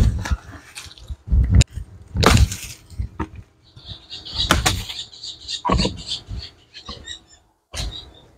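Dry palm fronds rustle and scrape as they are dragged through grass.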